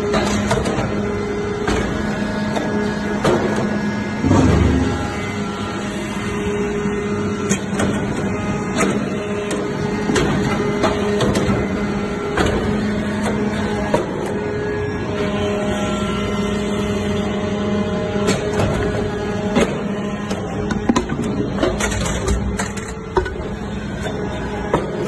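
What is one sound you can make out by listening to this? Metal clanks and knocks sharply inside a press.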